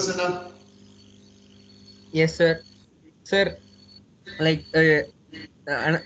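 A man speaks in short bursts, heard through an online call microphone.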